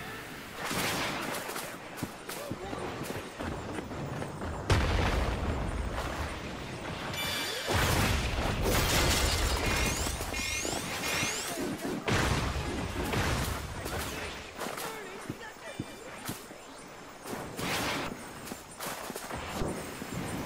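Energy blasts whoosh and crackle loudly.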